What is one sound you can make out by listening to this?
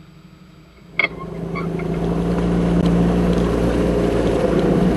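Water splashes loudly against a windscreen.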